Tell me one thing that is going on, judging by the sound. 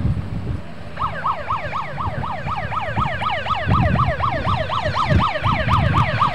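An ambulance siren wails rapidly up and down close by.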